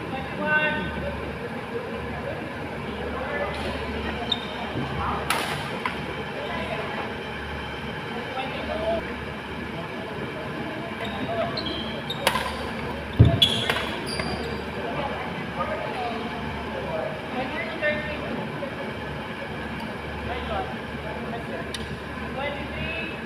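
Rackets hit a shuttlecock back and forth in a large echoing hall.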